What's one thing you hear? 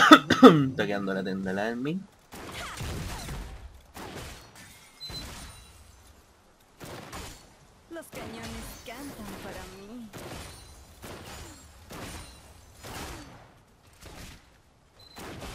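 Magic blasts and weapon hits crackle in a fantasy battle.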